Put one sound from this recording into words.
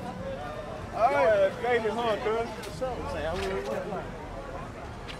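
A young man talks loudly close by.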